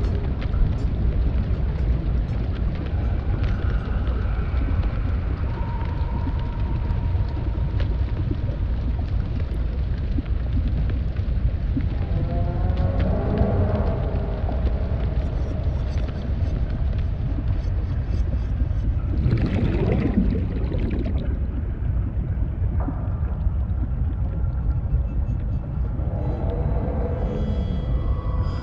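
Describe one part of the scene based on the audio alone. A low, steady underwater rumble fills the background.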